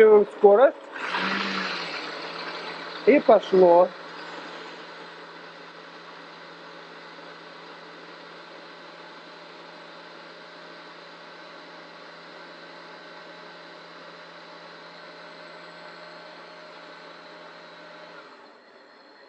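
A blender whirs steadily, then stops.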